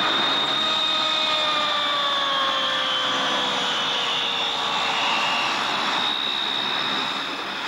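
Turboprop engines roar loudly with a high whine as a large aircraft taxis past.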